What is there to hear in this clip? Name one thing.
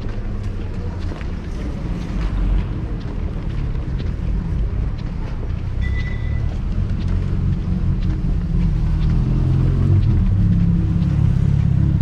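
Footsteps tap on a paved street outdoors.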